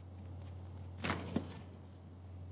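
A refrigerator door swings open with a thud.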